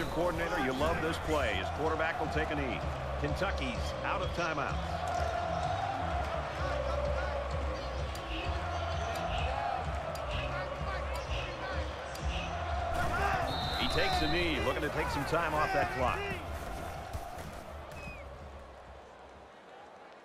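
A stadium crowd roars loudly.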